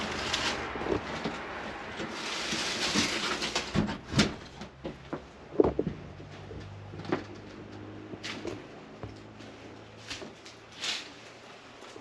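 Debris crackles and crunches underfoot.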